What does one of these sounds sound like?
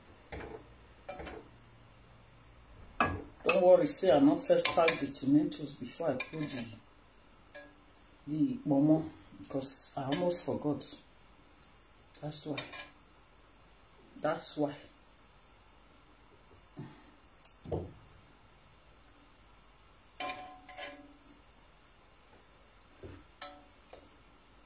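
A metal ladle clinks against a pot.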